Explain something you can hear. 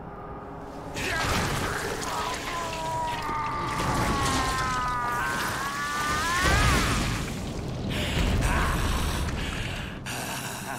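A huge creature growls and roars.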